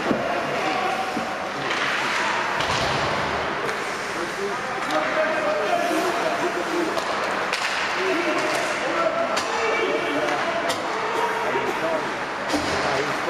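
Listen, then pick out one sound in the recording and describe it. Skates scrape and hiss on ice in a large echoing rink.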